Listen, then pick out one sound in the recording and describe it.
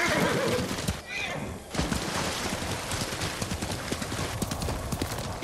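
Horse hooves gallop steadily over soft ground.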